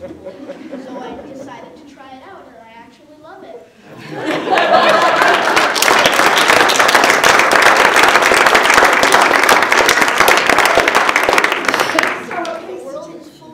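Children's voices chatter in a large room.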